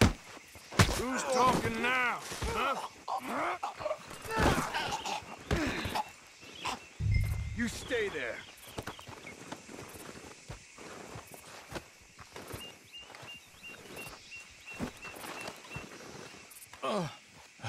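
A man grunts and shouts while fighting.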